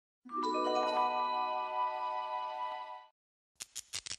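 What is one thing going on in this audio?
A bright chiming jingle plays.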